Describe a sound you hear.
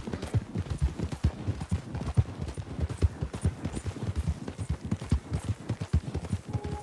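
Horses' hooves thud rapidly on dry ground at a gallop.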